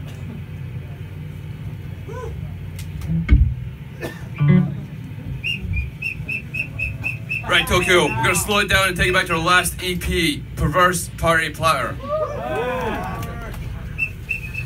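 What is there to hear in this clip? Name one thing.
A band plays electric guitars and drums loudly through loudspeakers.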